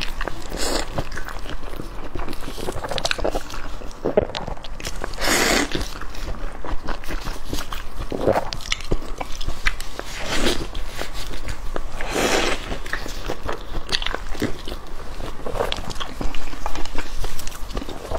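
A young woman chews soft food wetly and noisily close to a microphone.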